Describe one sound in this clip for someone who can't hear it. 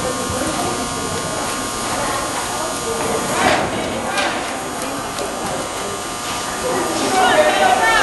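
A horse gallops on soft dirt in a large echoing hall.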